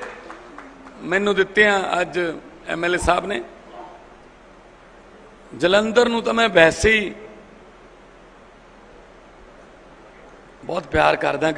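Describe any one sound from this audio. A man speaks forcefully into a microphone, heard through loudspeakers, in short bursts with pauses.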